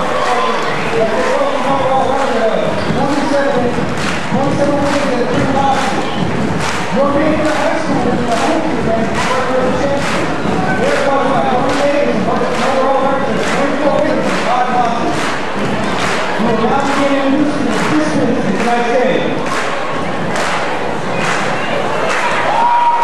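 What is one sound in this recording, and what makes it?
Young women clap in a steady rhythm.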